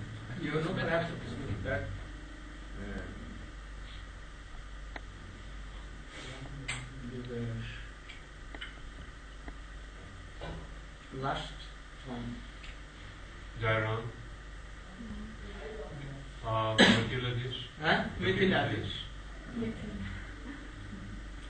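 An elderly man speaks slowly and calmly, close by, with pauses between phrases.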